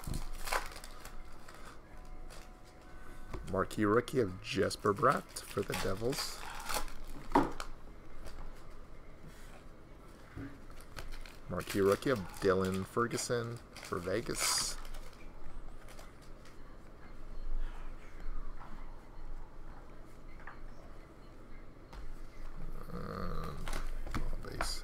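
Trading cards rustle and slide as they are flipped through.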